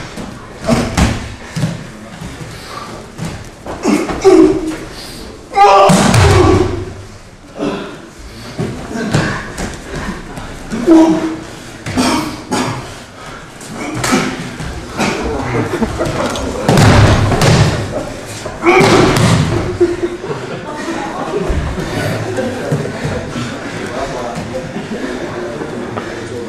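Bare feet scuff and shuffle on a mat.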